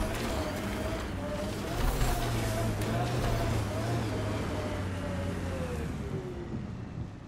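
Tyres crunch over sand and rock.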